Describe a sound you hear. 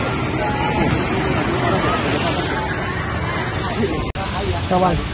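Distant people chatter.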